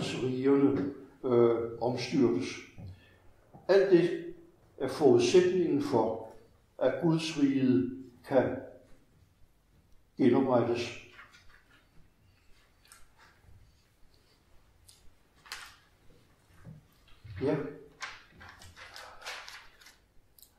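An elderly man reads aloud calmly.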